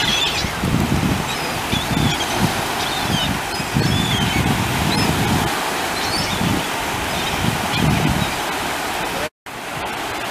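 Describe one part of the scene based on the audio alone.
Brown pelicans splash in the water.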